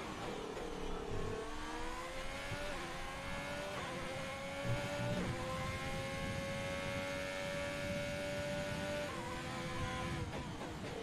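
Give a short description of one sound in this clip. A racing car engine whines loudly, its pitch climbing steadily.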